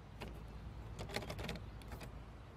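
A door handle turns with a click.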